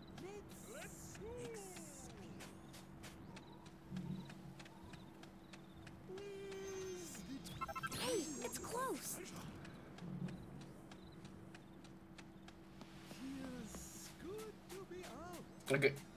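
Quick light footsteps patter on hard ground.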